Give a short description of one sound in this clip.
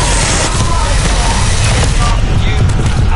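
An electric blast crackles and roars loudly.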